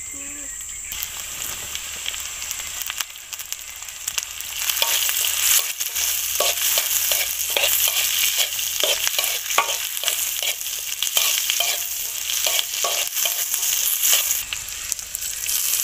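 Food sizzles and hisses in a hot pan.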